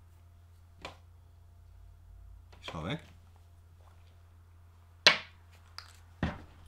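Small plastic pieces knock and clack together.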